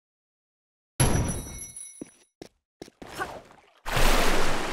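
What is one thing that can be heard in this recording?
Footsteps run across a stone floor.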